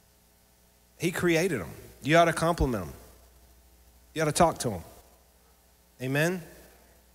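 A man speaks with animation through a microphone in a room with some echo.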